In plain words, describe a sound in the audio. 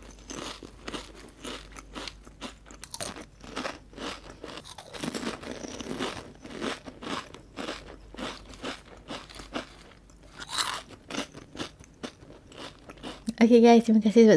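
A young woman crunches crispy snacks close to a microphone.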